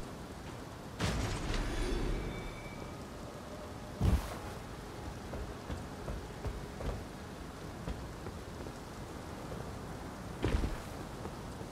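A blade slashes and thuds into a body.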